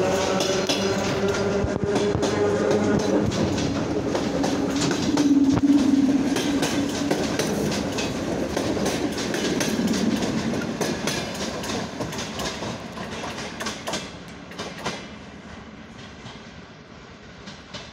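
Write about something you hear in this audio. An electric commuter train pulls away with its traction motors whining.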